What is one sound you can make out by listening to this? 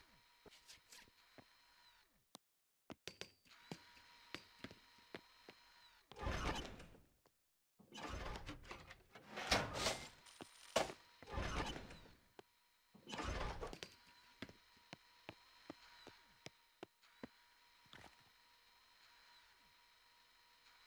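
Quick light footsteps tap on metal floors.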